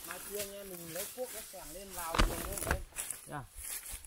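Leaves rustle as a man pushes through bushes.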